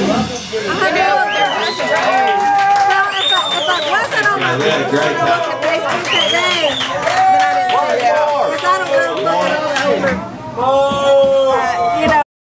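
A singer sings into a microphone over the band.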